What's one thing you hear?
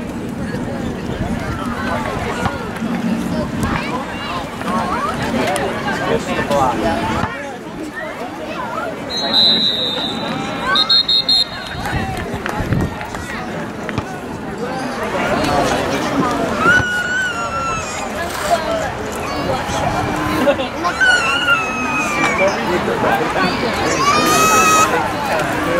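Men and boys shout and call out across an open field.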